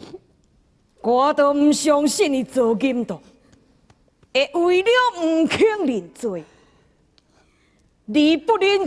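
A man sings and declaims in a strong, theatrical voice.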